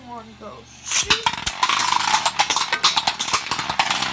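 Spinning tops clash and scrape against each other with a loud grinding rattle.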